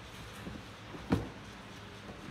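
A drawer clatters open.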